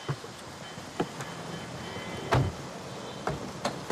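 A car door clunks.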